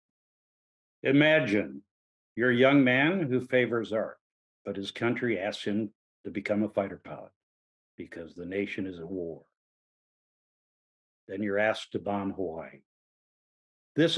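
An older man speaks calmly into a microphone, heard close up.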